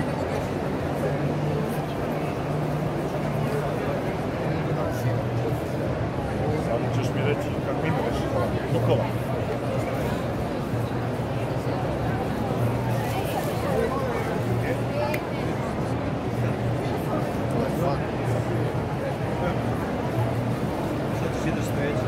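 A busy crowd murmurs throughout in a large echoing hall.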